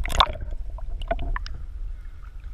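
Water splashes and gurgles around the microphone as it breaks the surface.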